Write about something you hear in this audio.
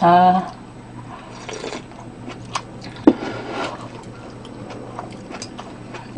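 A young woman slurps noodles close to a microphone.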